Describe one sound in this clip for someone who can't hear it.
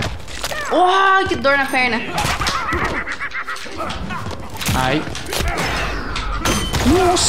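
A young woman shouts excitedly into a microphone.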